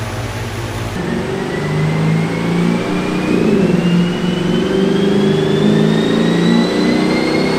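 A car engine revs loudly, its pitch rising steadily.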